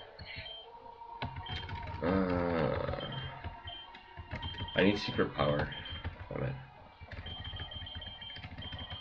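Chiptune video game music plays.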